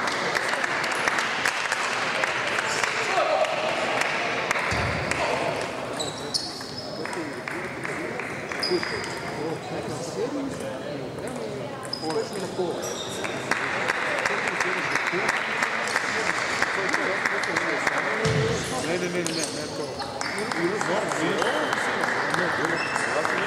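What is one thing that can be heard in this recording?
A table tennis ball clicks quickly back and forth off paddles and a table in a large echoing hall.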